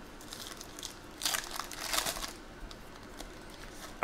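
A foil card pack crinkles and tears open in hands.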